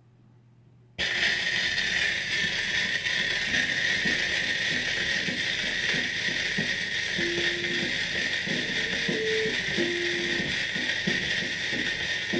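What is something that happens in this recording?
Crackle and hiss come from a worn record's surface.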